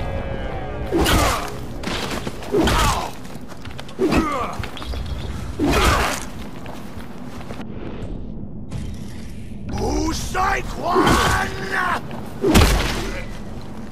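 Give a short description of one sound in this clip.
A man grunts and cries out as he is struck.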